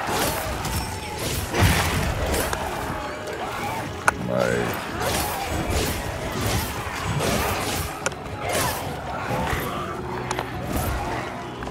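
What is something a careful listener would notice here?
A huge monster roars and thrashes.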